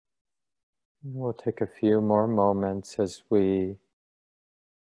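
A middle-aged man speaks calmly into a microphone, as on an online call.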